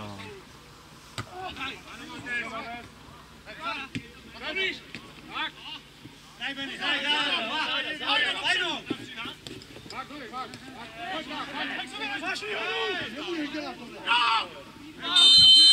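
Players shout to each other across an open field, heard from a distance.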